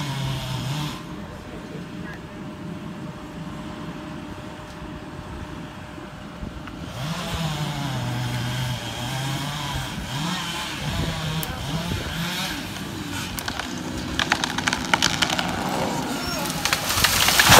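A chainsaw engine whines and revs as it cuts into a tree trunk.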